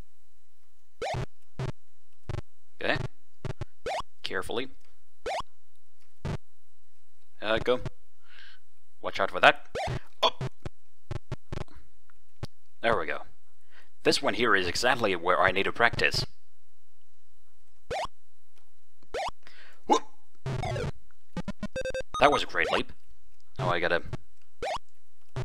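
Short electronic game blips and zaps sound now and then.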